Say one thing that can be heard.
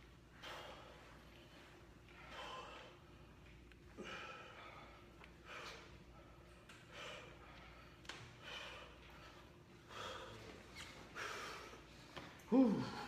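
A young man exhales sharply with each lift.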